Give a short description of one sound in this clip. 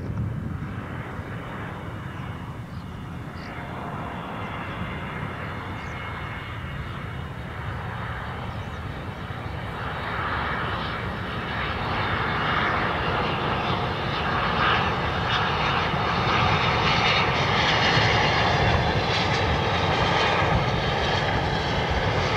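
A jet airliner's engines roar as it approaches overhead, growing louder.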